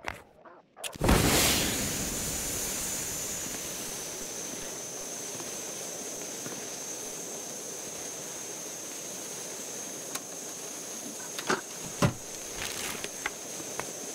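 A lit flare hisses and sputters steadily.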